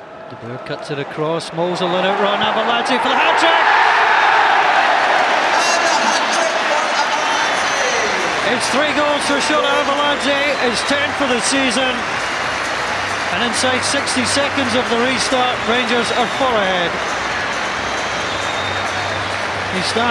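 A large stadium crowd roars and cheers loudly.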